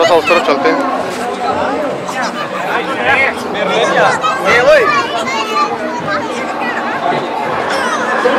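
Children shout and chatter excitedly close by.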